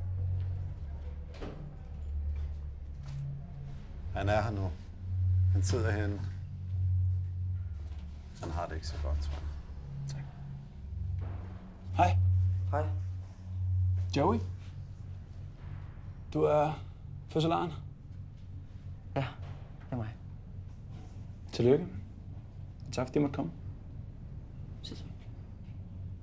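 A man speaks quietly and calmly nearby.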